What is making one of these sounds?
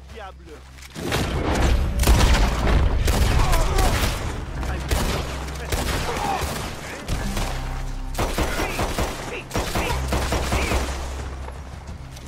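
A rifle fires several loud shots that echo outdoors.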